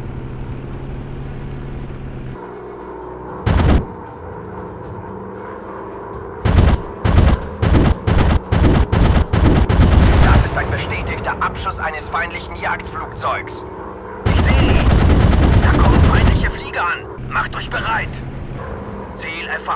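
A propeller engine drones steadily.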